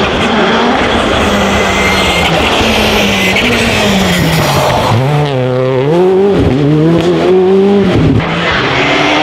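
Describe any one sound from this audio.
A rally car engine roars close by, revving hard and dropping in pitch with each gear change.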